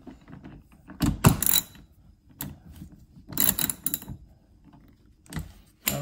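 A screwdriver turns a screw.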